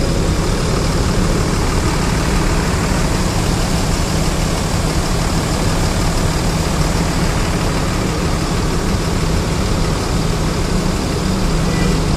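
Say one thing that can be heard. A diesel coach bus engine rumbles close by.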